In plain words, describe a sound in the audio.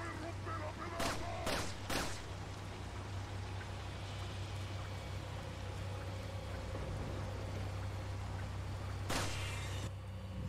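A pistol fires several sharp shots.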